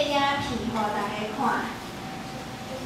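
A woman speaks over a loudspeaker in a large echoing room.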